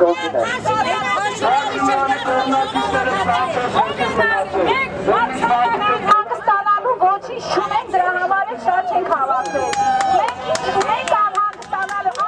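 A middle-aged woman shouts angrily up close.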